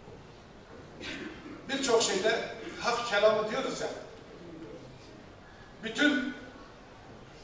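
A middle-aged man speaks loudly into a microphone.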